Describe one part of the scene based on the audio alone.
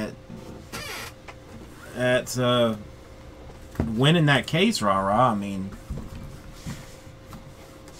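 Cardboard boxes rustle and knock as hands move them.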